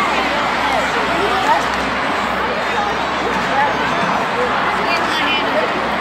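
A large crowd murmurs and chatters in an echoing arena.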